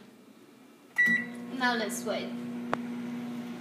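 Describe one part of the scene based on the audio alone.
A microwave beeps as buttons are pressed.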